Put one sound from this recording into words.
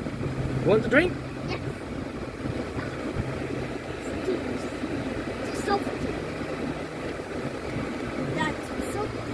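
A young child talks with animation close by.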